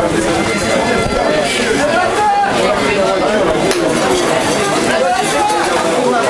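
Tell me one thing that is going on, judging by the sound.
Several young men and spectators talk and call out at once outdoors, close by.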